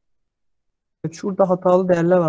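A man speaks calmly into a microphone, as if on an online call.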